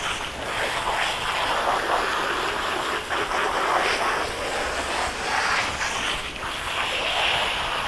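Water splashes and drips onto a wet floor.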